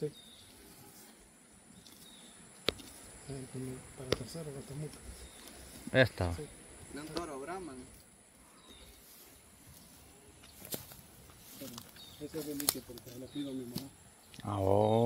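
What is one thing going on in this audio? A cow tears and chews grass up close.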